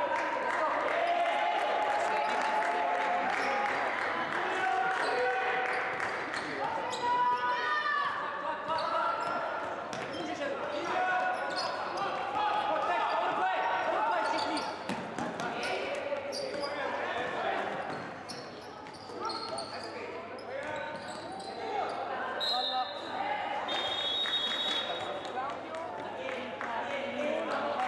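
Players shout and call to each other across the hall.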